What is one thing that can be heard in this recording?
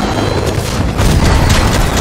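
A gunshot cracks sharply.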